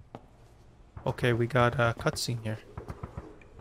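A young man speaks with animation close to a headset microphone.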